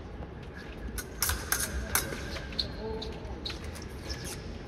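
Fencing blades clash and click sharply.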